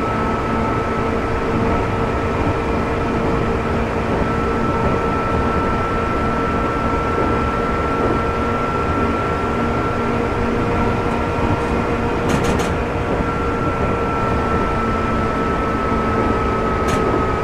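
An electric train motor hums steadily.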